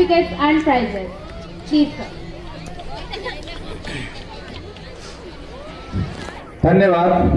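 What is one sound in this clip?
A man speaks steadily into a microphone, heard through loudspeakers outdoors.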